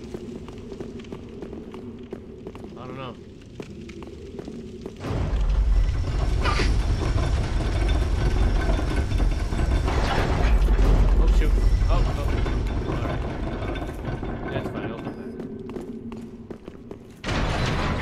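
Armoured footsteps clank and scrape on stone.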